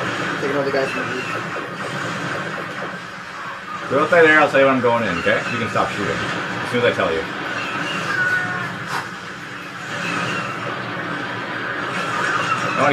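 Laser blasters fire rapidly in a video game, heard through a television speaker.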